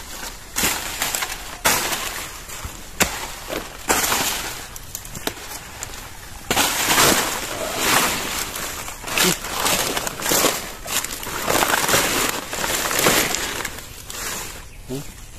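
Dry banana leaves rustle and crackle as a man handles them.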